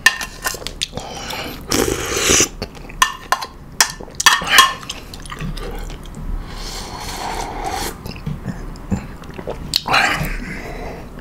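A spoon scrapes and clinks against a ceramic bowl.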